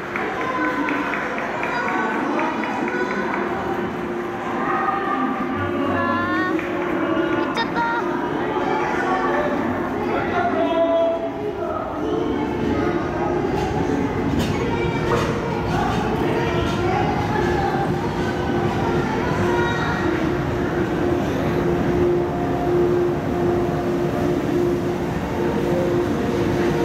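A train pulls slowly into an echoing station.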